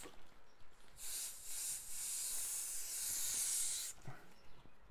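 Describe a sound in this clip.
A man blows his nose into a tissue.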